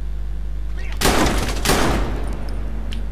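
A pistol fires two loud shots in quick succession.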